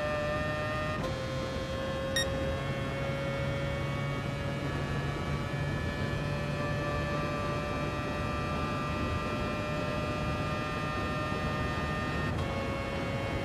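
A racing car's gearbox shifts up with a sudden drop in engine pitch.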